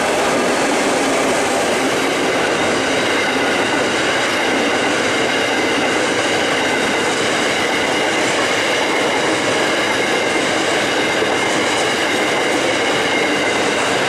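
Coal wagons rumble and clatter past close by on steel rails.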